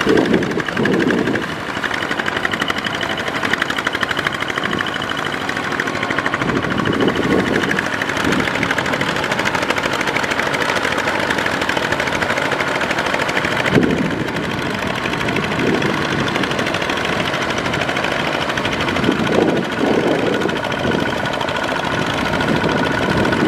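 Small diesel engines chug and rattle steadily close by.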